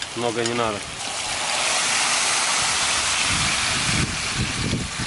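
Meat sizzles loudly as water hits a hot pot.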